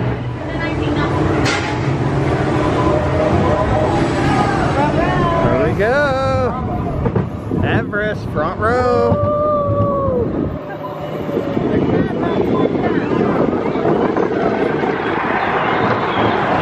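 A roller coaster rumbles and clatters along its track.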